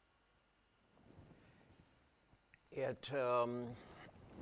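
An elderly man speaks into a microphone, drawing out a word.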